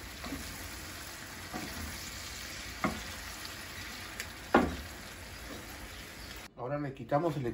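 Shrimp sizzle in a hot pan.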